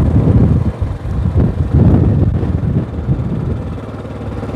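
Wind rumbles against the microphone.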